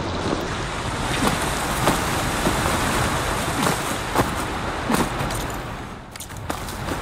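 Water rushes and roars nearby.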